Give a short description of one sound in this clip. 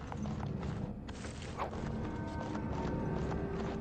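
Magic fire crackles and whooshes.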